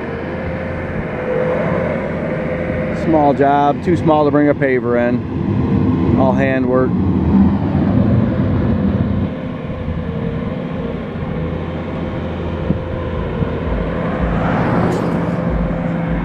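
Heavy machine engines idle and rumble steadily outdoors.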